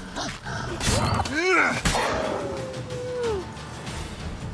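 A wolf snarls and yelps in a fight.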